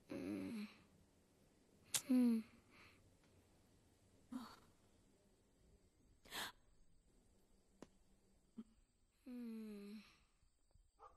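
A boy sobs quietly close by.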